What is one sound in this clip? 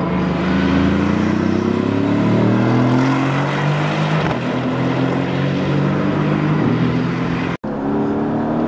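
A sports car engine roars loudly past, dropping in pitch as the car slows.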